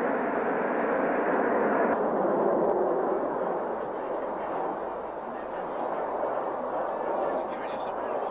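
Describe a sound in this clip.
A formation of jet aircraft roars overhead.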